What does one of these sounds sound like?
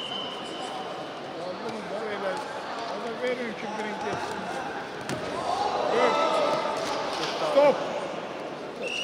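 Spectators shout and cheer from the stands.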